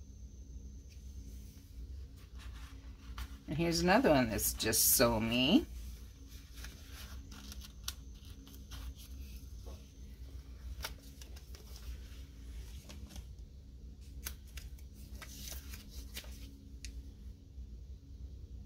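Paper stickers crinkle and peel off a backing sheet.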